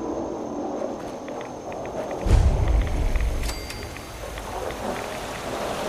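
A radiation counter crackles with irregular clicks.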